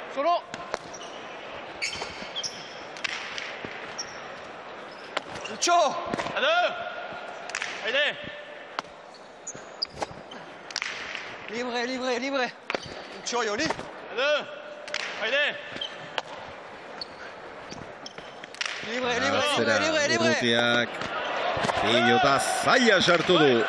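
A hard ball smacks against a wall and echoes in a large hall.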